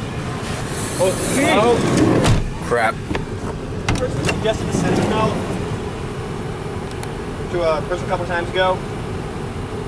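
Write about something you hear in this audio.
A young man talks casually nearby, outdoors.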